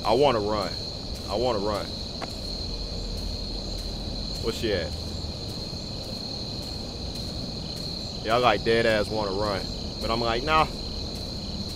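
A young man speaks in short, animated bursts into a headset microphone, close up.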